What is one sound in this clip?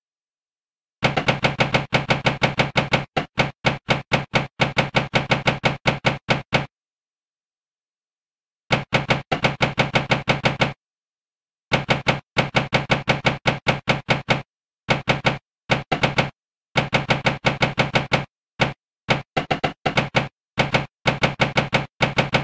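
A pinball machine gives rapid electronic beeps in quick bursts.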